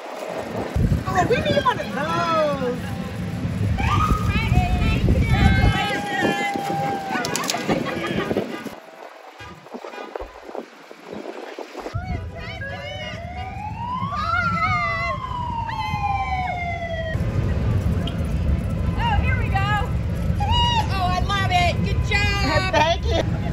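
Women cheer and call out from the roadside.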